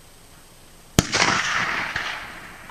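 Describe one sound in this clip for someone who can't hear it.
A rifle fires a single loud shot that echoes outdoors.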